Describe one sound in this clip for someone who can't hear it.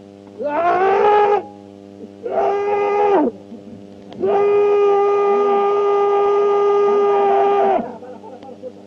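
Several men strain and groan loudly as they haul on a rope.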